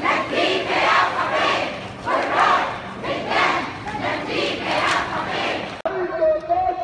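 A large crowd chants loudly in rhythmic bursts.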